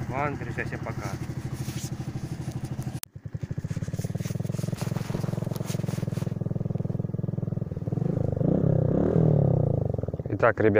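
A motorcycle engine runs close by with a throbbing, popping rumble.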